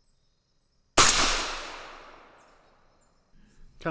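A rifle fires a single loud shot outdoors, the blast rolling away into the distance.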